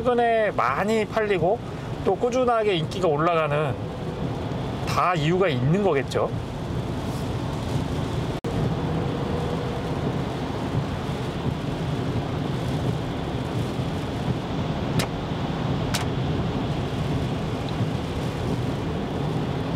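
Windshield wipers sweep back and forth.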